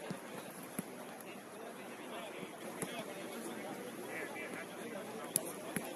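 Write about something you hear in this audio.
Several men talk together nearby, outdoors.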